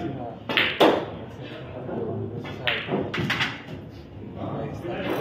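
Pool balls knock together and thud against the cushions.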